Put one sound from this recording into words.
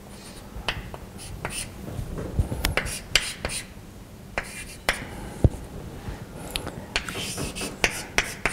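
Chalk taps and scrapes against a blackboard.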